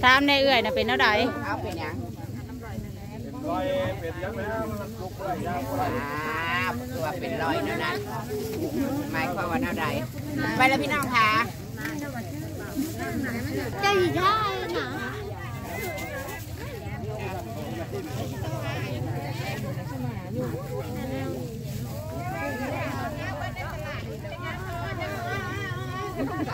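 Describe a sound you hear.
Adult men and women chatter nearby in the open air.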